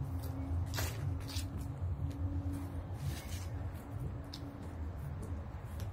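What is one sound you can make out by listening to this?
Footsteps crunch on dry leaves nearby.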